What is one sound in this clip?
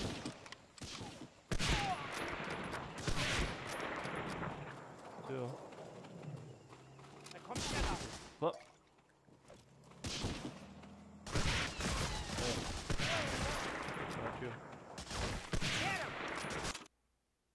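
Rifle shots crack loudly, one at a time, with echoing booms.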